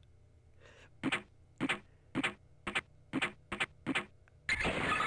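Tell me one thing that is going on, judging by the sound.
A door handle rattles and clicks several times.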